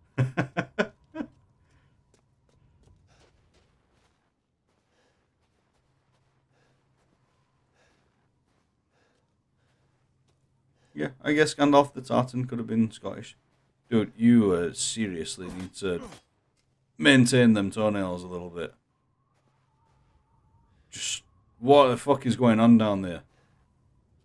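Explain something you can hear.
A young man talks with animation into a close microphone, pausing between phrases.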